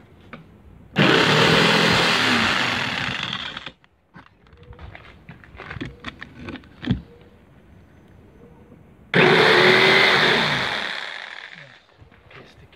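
An electric jigsaw buzzes loudly while cutting wood.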